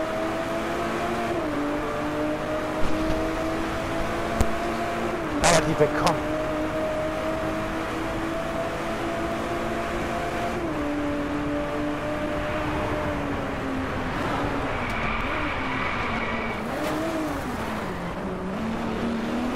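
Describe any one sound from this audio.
A racing car engine roars steadily, shifting gears as it speeds up.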